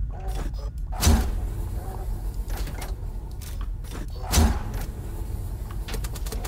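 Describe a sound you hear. An electric beam crackles and zaps.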